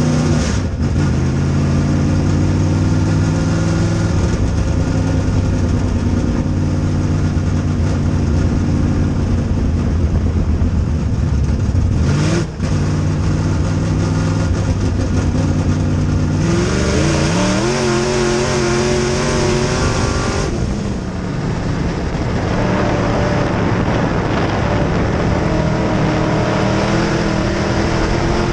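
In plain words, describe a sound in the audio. A race car engine roars loudly up close, rising and falling in pitch.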